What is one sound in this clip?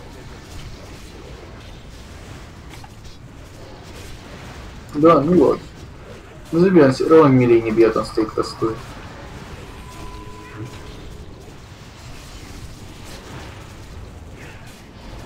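Magic spells burst and crackle during a fight.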